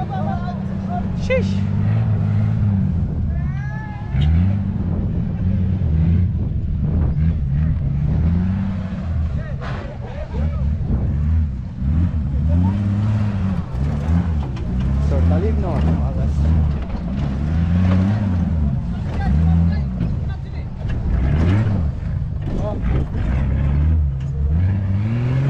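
An off-road vehicle's engine roars and revs up and down repeatedly.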